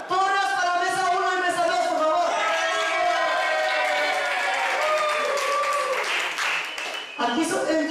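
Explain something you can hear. A woman speaks with animation through a loudspeaker in a large room.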